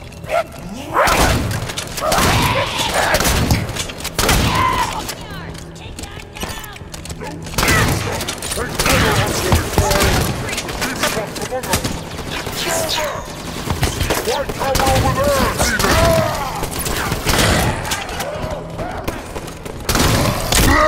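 Rapid gunfire bursts out in short volleys.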